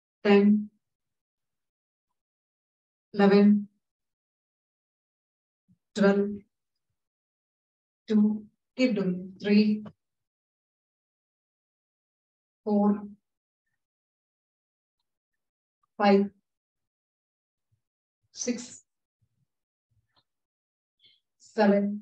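A woman calls out short counts and instructions over an online call, with long pauses between them.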